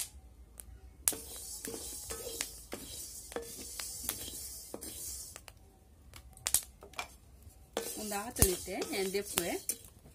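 A wooden spatula scrapes and stirs seeds in a metal wok.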